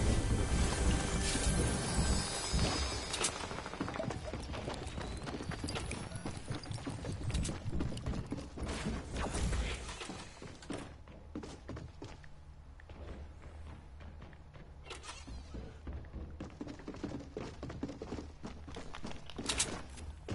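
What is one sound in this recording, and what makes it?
A treasure chest chimes and glitters.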